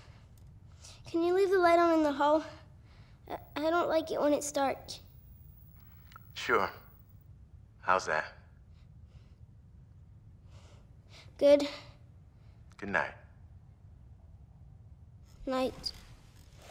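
A young girl speaks softly and nervously.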